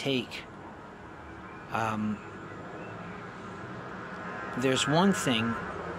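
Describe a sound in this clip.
A man speaks calmly and hesitantly into a phone microphone, close by.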